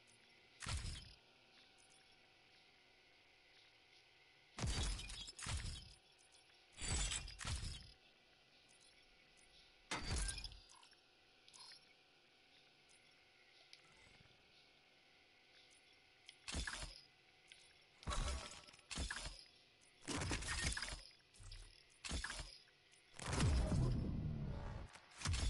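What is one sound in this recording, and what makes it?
Menu sounds whoosh and click as options are selected.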